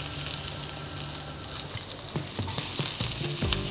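Onions sizzle in a hot pan.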